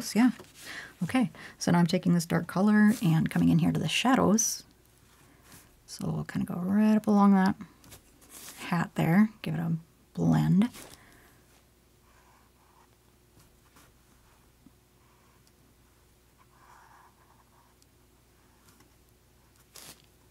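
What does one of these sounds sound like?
A paintbrush dabs and brushes softly on canvas.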